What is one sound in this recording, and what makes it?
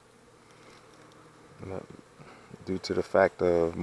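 A wooden hive frame scrapes as it is lifted out.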